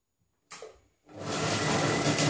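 A food processor motor starts whirring loudly.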